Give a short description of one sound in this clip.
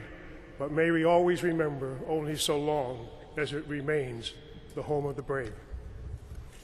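An elderly man speaks slowly into a microphone in a large echoing hall.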